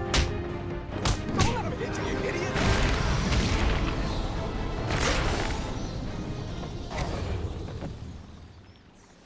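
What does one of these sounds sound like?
Punches and kicks thud hard in a fight.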